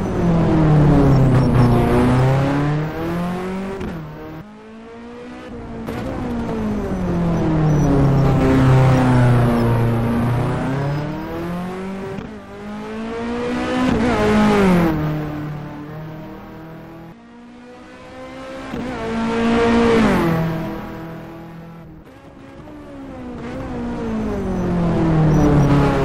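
A race car engine roars as it passes by at high speed, its pitch rising and falling.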